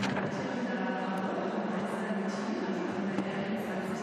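A gymnast lands with a heavy thud on a mat.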